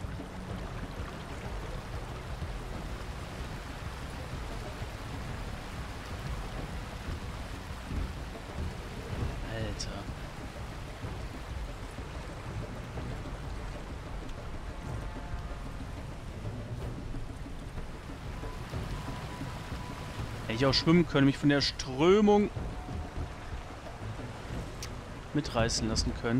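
Water laps and splashes as a paddle strokes through it.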